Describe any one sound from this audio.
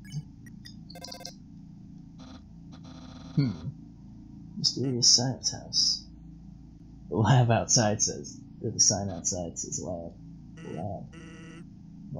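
Short electronic beeps chirp rapidly in bursts, like text ticking onto a display.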